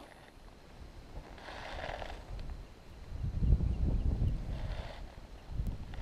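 A fishing reel whirs as it is wound.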